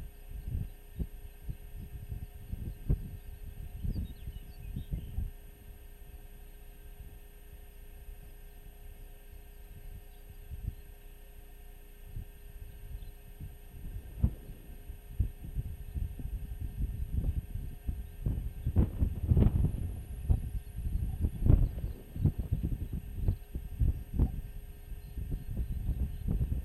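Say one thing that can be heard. Wind gusts roar and buffet across open ground outdoors.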